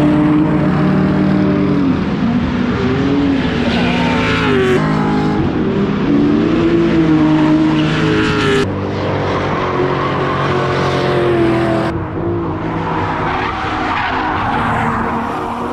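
A car engine revs hard and roars.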